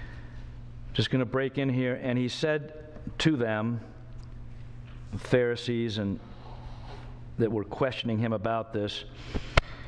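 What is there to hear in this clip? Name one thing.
A middle-aged man speaks calmly into a microphone, heard through a loudspeaker in a large room.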